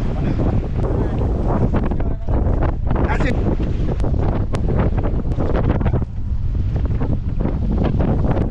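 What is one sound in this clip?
A boat engine rumbles steadily on open water.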